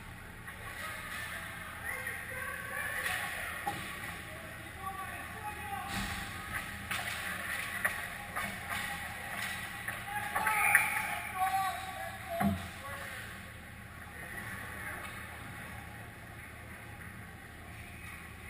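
Skates scrape and hiss on ice in a large echoing hall.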